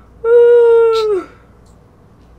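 A boy shouts loudly and excitedly into a microphone.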